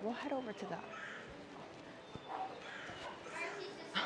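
Men and women murmur and talk quietly in the background.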